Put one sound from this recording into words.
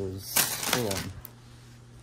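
A metal chain jingles lightly.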